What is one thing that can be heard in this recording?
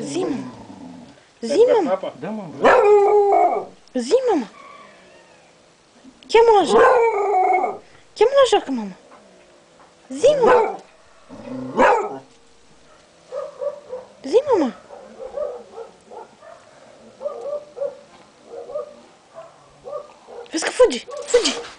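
A dog barks and howls loudly nearby.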